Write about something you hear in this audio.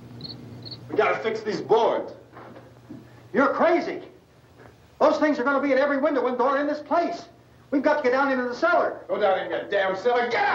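A man shouts urgently and excitedly close by.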